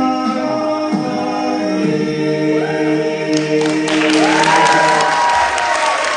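A group of young men sing in close harmony behind a lead voice.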